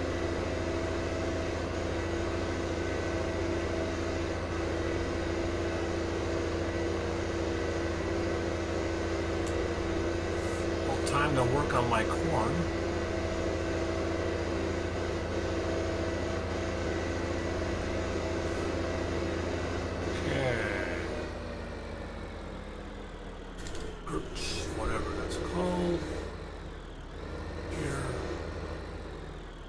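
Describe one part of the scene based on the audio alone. A tractor engine drones steadily as it drives along.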